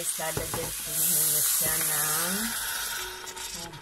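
Hot water pours from a kettle into a metal pot with a splashing rush.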